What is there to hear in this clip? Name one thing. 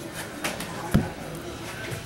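A plastic box is set down on a table with a knock.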